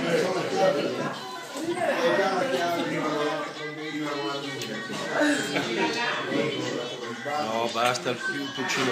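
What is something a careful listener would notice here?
Several men and women talk and laugh together close by, in a lively echoing room.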